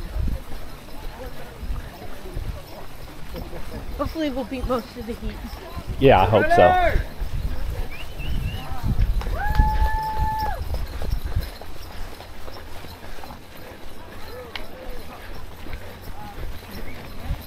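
Footsteps thud steadily on grass as runners jog.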